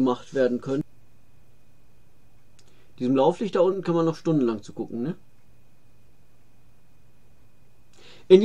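A middle-aged man speaks calmly and close to a microphone, in short bursts.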